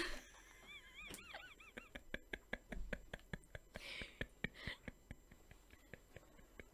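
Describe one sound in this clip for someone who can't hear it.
Two young women giggle softly into microphones.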